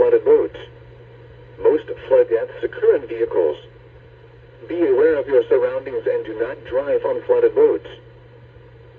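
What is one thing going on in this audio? An automated voice reads out a message through a small radio speaker.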